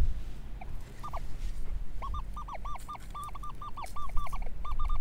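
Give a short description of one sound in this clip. A metal detector beeps in quick repeated high tones.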